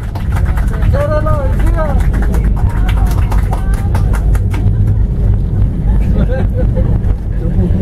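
A jet engine rumbles and whines steadily, heard from inside an aircraft cabin.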